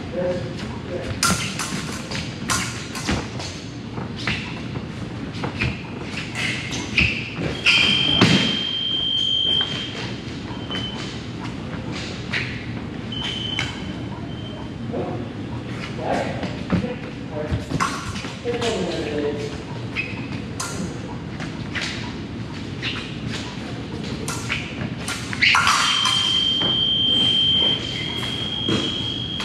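Fencing blades clash and click in an echoing hall.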